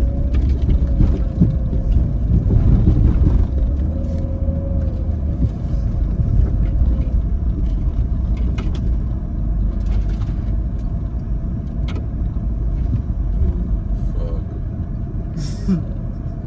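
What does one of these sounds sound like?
Branches and leaves scrape against the side of a vehicle.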